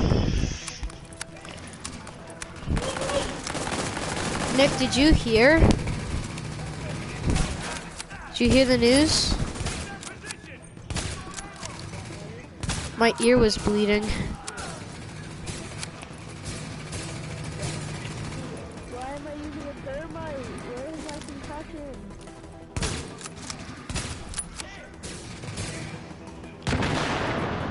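Gunfire cracks in sharp bursts.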